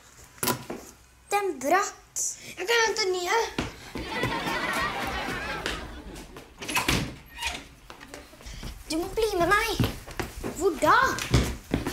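A young girl speaks calmly, close by.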